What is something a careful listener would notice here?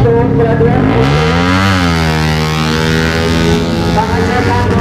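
A racing motorcycle roars past, its pitch rising and then falling.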